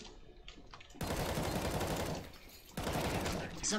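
A rifle fires a rapid burst indoors.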